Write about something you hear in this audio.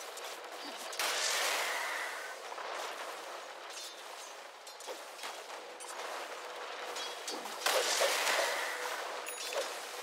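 Spells burst with loud whooshing blasts.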